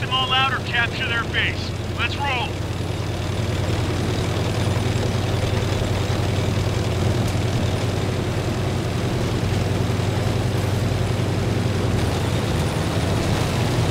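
Tank tracks clatter over the ground.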